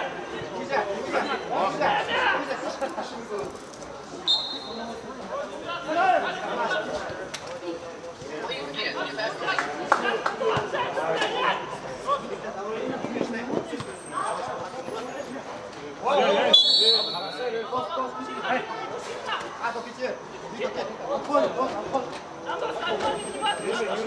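Young men shout and call to each other across an open pitch.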